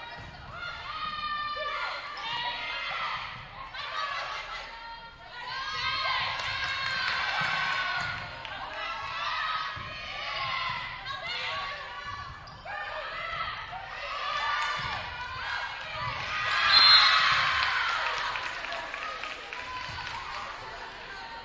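Young women shout and call out on a court in a large echoing gym.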